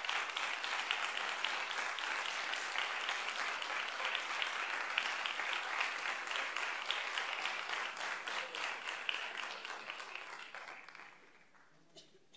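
An audience claps loudly in a large hall, and the applause dies away.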